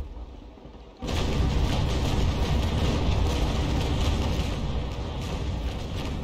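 Cannons fire with loud booming blasts.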